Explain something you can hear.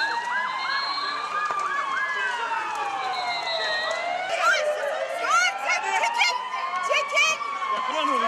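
Sirens wail loudly nearby, rising and falling.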